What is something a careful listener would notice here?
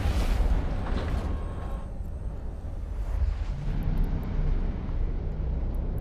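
A deep spaceship rumble drones steadily.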